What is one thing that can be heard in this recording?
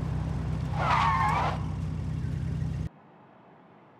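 A sports car engine roars loudly at speed.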